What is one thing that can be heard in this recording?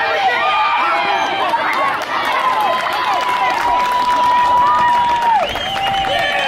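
A crowd of young people cheers and screams excitedly outdoors.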